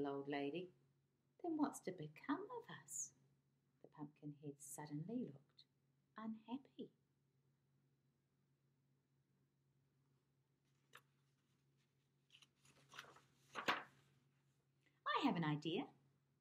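A woman reads aloud expressively, close to the microphone.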